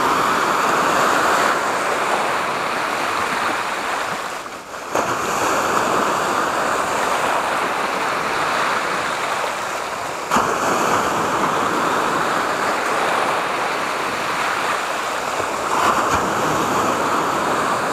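Sea waves break and wash against rocks.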